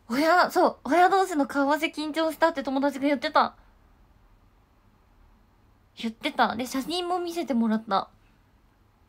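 A young woman speaks with animation close to a microphone, in bursts with pauses.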